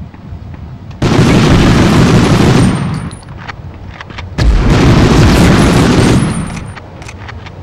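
Automatic gunfire blasts in two long, loud bursts.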